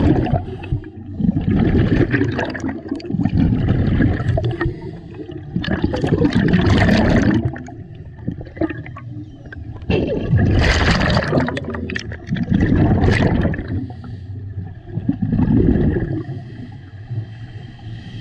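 Air bubbles rush and gurgle loudly in repeated bursts from a diver's breathing gear underwater.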